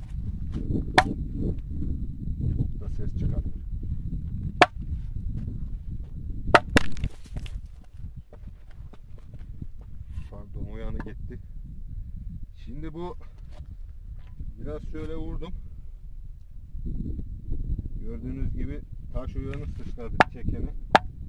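A pick strikes rock with sharp ringing blows.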